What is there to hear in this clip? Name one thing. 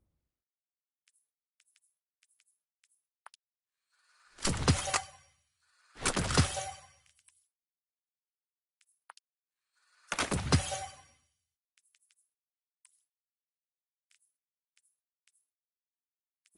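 Soft interface clicks tick as items are browsed.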